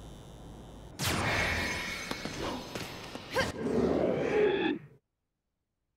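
A portal hums and whooshes as a figure is pulled through.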